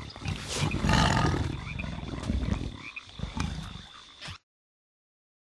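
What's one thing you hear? Small cartoon creatures chatter and squeak in high voices.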